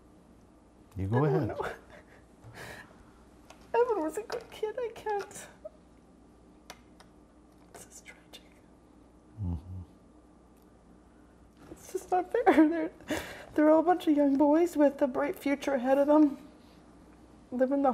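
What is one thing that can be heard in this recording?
A middle-aged woman speaks tearfully, close to a microphone.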